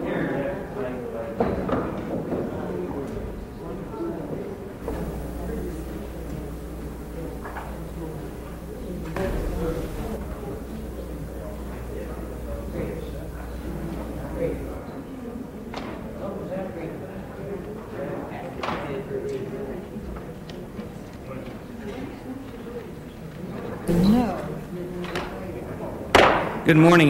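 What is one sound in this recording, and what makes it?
Many people murmur and chat in a large room.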